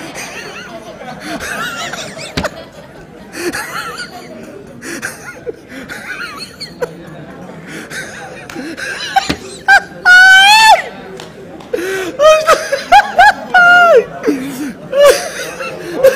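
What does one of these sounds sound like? A man laughs loudly and heartily into a microphone.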